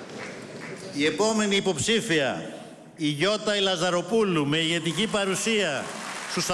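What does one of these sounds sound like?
A man speaks forcefully into a microphone over loudspeakers in a large echoing hall.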